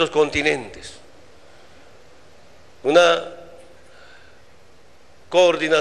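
A man speaks slowly and emphatically into a microphone, with pauses, his voice carrying through a loudspeaker.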